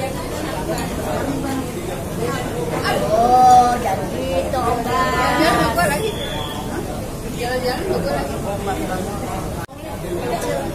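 An elderly woman talks and laughs with animation close by.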